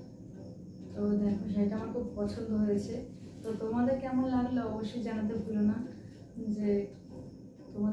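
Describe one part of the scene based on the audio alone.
A young woman speaks calmly and warmly, close by.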